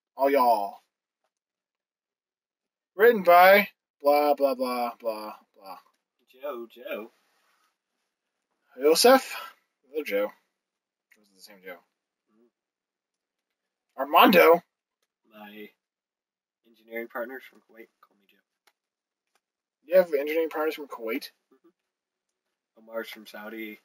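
A second young man answers through a microphone.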